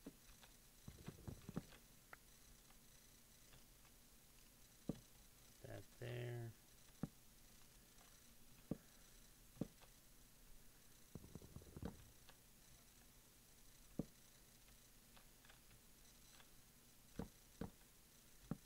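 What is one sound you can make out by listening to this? Wooden blocks thud and knock as they are chopped and placed.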